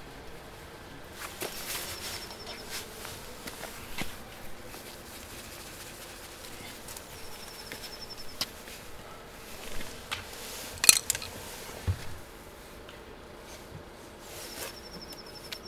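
Small metal clicks and scrapes come from a wire being handled close by.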